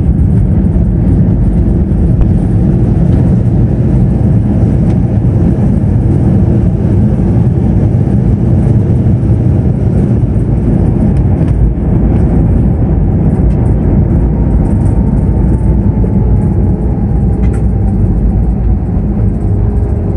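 Wheels rumble and rattle over the runway, heard inside an airliner cabin.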